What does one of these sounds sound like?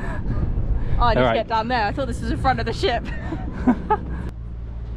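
A young woman talks cheerfully, close by.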